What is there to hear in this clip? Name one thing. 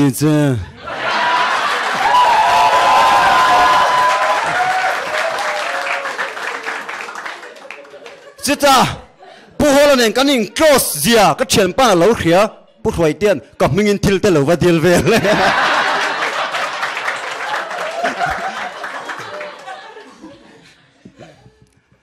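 An audience laughs and claps in a large hall.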